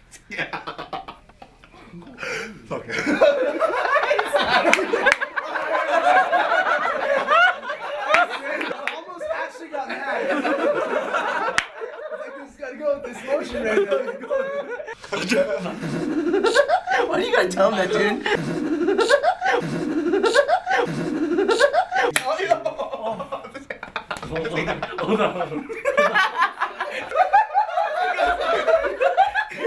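Several young men laugh loudly and excitedly close by.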